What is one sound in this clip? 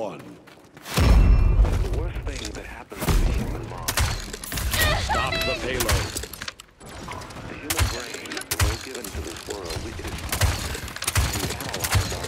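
Explosions boom and crackle in a heavy fight.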